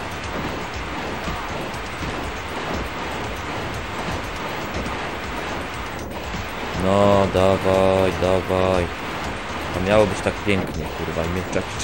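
Retro video game sound effects of blasts and hits play.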